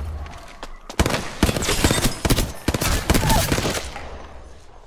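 Rapid gunfire rattles in sharp bursts.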